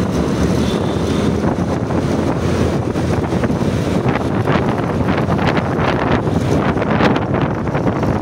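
Wind rushes past while riding.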